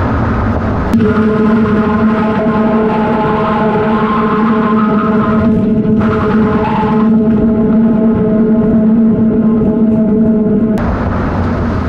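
A car engine hums with a steady whine.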